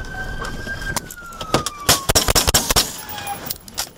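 A rifle fires several rapid, loud shots.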